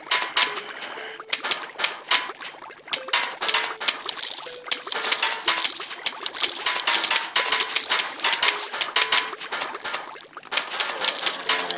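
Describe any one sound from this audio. Peas hit zombies with rapid splats and thuds.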